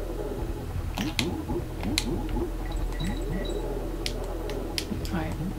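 Short game sound effects blip and click.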